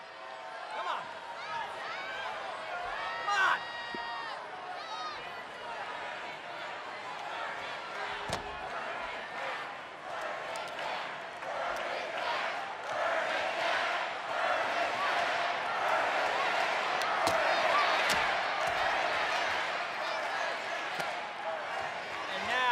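A large crowd cheers and chants in an echoing arena, growing louder.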